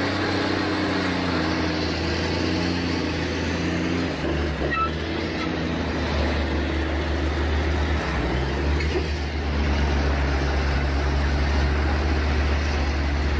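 A heavy truck's diesel engine rumbles steadily and labours.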